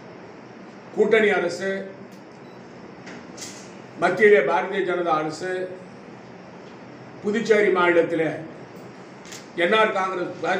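An elderly man speaks calmly into microphones, in short bursts with pauses.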